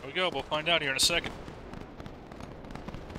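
A musket fires with a loud crack.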